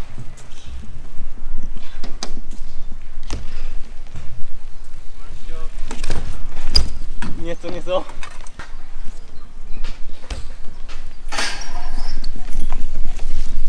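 Bike tyres roll and rattle over concrete.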